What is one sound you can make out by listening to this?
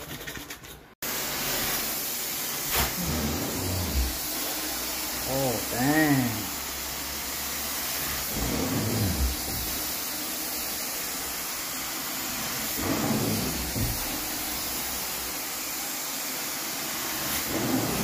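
A carpet cleaning machine roars steadily with a loud hissing suction.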